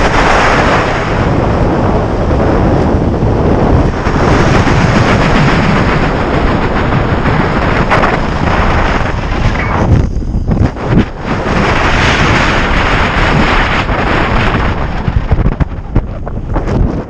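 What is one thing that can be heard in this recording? Wind roars loudly past a microphone.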